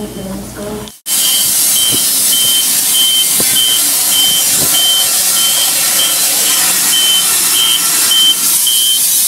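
A portable bandsaw mill cuts through a log.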